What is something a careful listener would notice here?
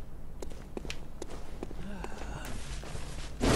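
Footsteps crunch on grass and earth.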